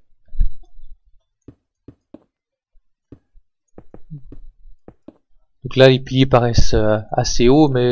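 Stone blocks are placed with short dull thuds, one after another.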